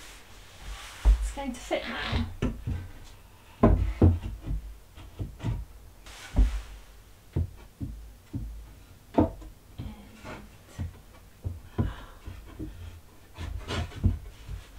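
Wooden boards knock and clatter against a wall.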